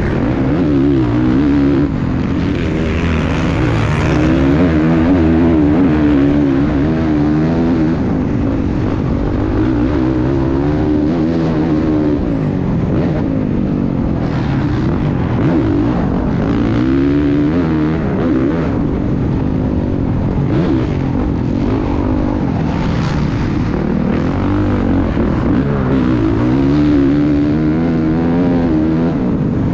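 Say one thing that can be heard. Tyres churn through loose sand.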